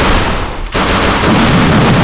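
A gun fires in quick bursts.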